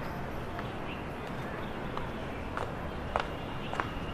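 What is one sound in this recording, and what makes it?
Footsteps tap on stone steps outdoors.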